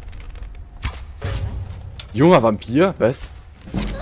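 An arrow thuds into a body.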